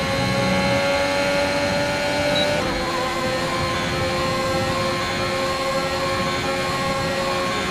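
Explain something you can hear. A racing car engine screams at high revs.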